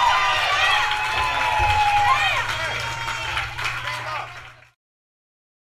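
A rock band plays loudly on electric guitars and drums.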